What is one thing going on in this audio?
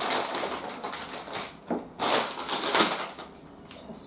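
A plastic wrapper crinkles in hands.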